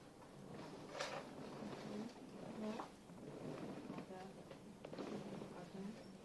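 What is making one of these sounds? Cloth rustles and brushes close by.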